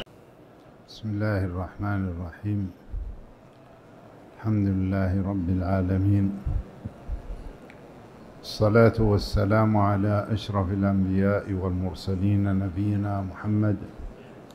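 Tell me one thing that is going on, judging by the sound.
An elderly man speaks calmly into a microphone, in a slow, measured voice.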